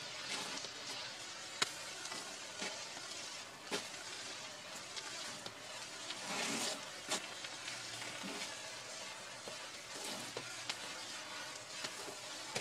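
A flare burns with a steady fizzing hiss.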